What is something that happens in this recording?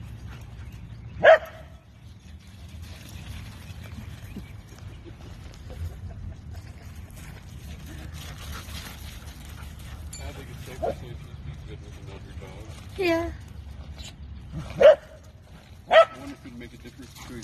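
Dogs' paws scuffle and patter across wood chips.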